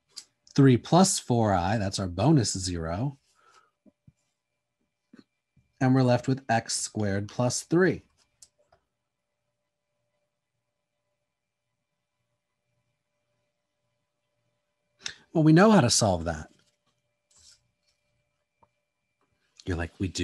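A man speaks calmly and closely into a microphone, pausing between phrases.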